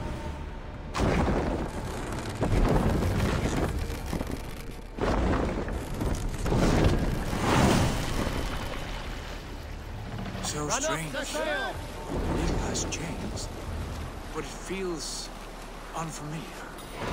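Sea waves wash and splash against a wooden ship's hull.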